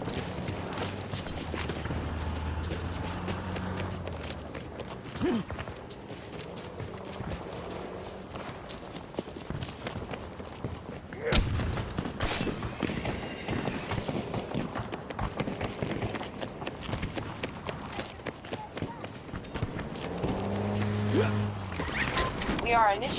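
Footsteps patter quickly.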